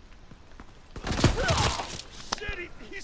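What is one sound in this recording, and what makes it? A rifle fires a rapid burst of shots up close.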